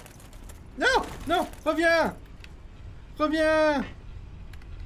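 A young man speaks with animation into a close microphone, in short exclaiming bursts.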